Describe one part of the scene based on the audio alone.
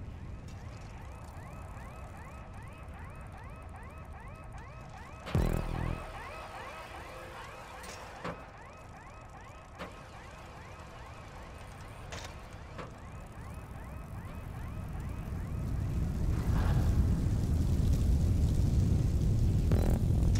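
Bicycle tyres roll and rattle over a metal surface.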